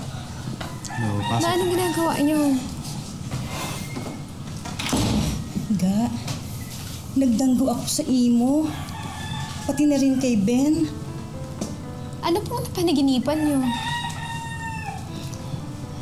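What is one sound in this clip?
A woman speaks emotionally up close.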